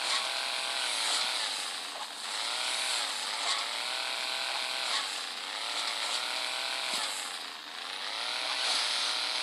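A game car engine revs up and down in steady waves.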